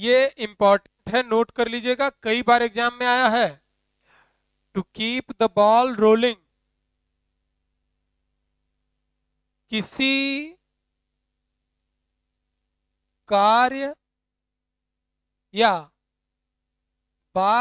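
A young man speaks with animation, close by, in pauses.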